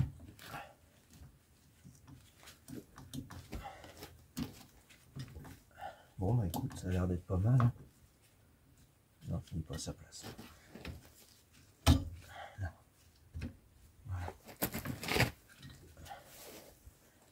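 Metal parts clink and knock.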